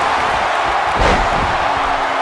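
A body slams hard onto a wrestling mat with a thud.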